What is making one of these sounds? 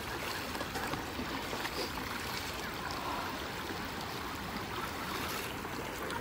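Water splashes around legs wading through a river.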